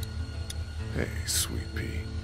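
A man speaks gently at close range.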